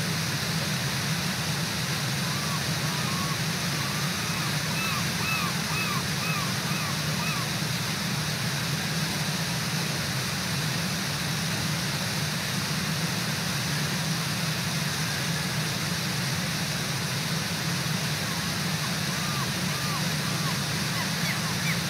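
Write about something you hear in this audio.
A bear splashes through shallow water.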